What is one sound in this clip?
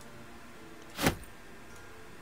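A short soft thud sounds as an item drops into place.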